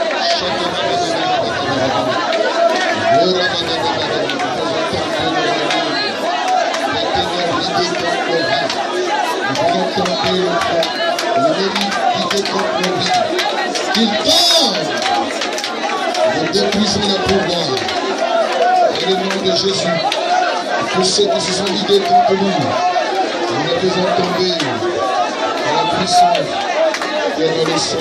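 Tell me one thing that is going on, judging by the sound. A man sings through a microphone and loudspeaker.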